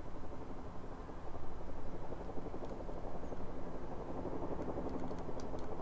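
Race car engines idle with a deep, steady rumble.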